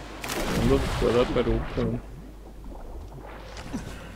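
Water splashes and sloshes as a swimmer strokes through it.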